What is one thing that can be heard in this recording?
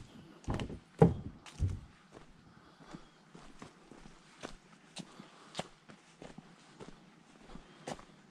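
Footsteps crunch on a dirt path outdoors.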